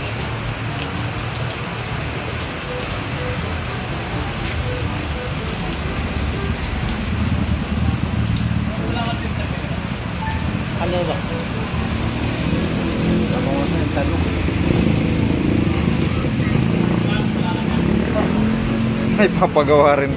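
Hands rattle and tap on a motorcycle's metal parts.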